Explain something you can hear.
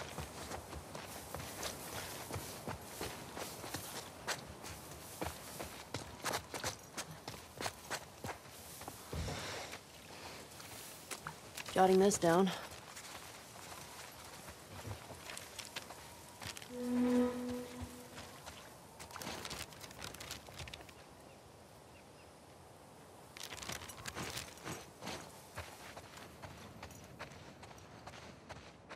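Footsteps tread through grass and up stone steps.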